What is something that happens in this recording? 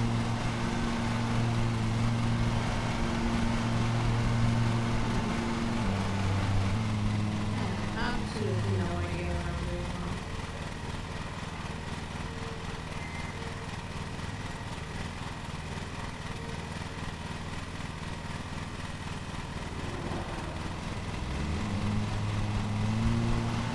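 A riding mower engine drones and then settles into a lower idle before revving up again.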